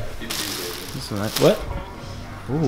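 Plastic garment bags rustle as a hand pushes through them.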